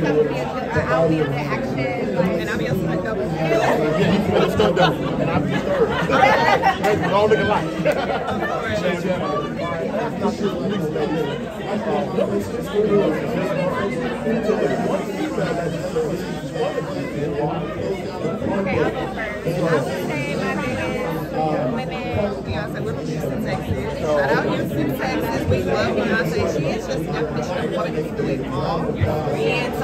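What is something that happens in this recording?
A second young woman talks into a microphone close by.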